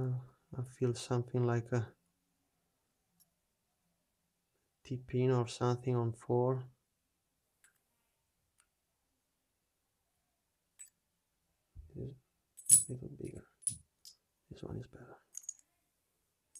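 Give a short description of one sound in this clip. Small metal parts click and scrape as a lock cylinder is handled.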